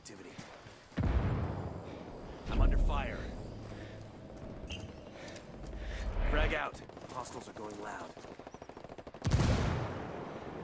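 Gunshots crack loudly nearby.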